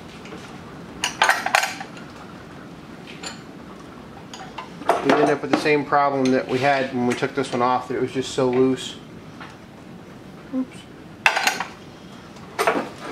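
Metal tools clank against a metal vise.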